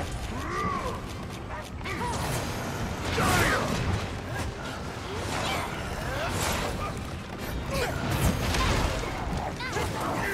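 A large monster roars and screeches.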